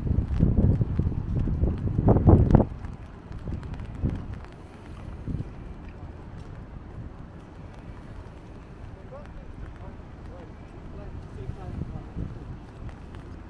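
Wind gusts blow across the microphone outdoors.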